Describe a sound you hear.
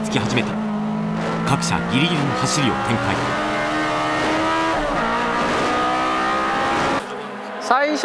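A race car engine roars loudly from inside the cabin, revving up and down.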